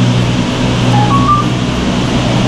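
A ticket gate beeps twice.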